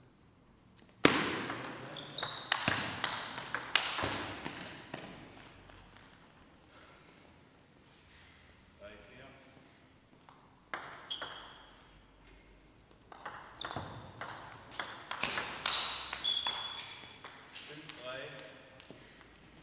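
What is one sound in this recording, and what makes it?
A table tennis ball clicks rapidly back and forth between paddles and table in an echoing hall.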